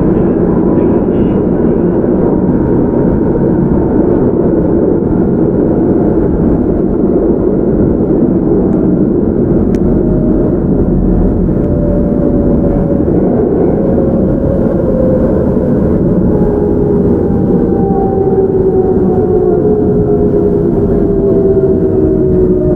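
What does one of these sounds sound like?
A train's motor whines, slowly falling in pitch.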